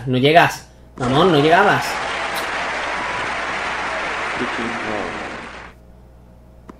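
A crowd cheers and applauds loudly, then falls quiet.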